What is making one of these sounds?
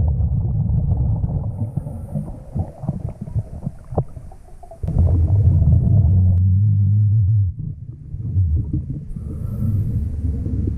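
Water rumbles and gurgles, heard from underwater.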